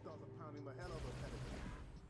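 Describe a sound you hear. A rifle fires a short burst.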